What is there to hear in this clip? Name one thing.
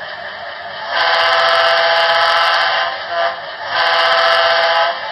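A model train horn blares twice.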